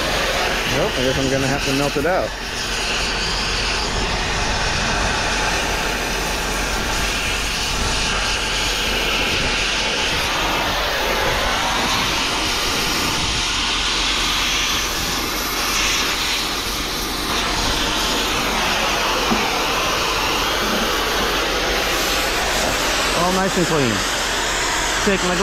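A cutting torch hisses and roars steadily against metal.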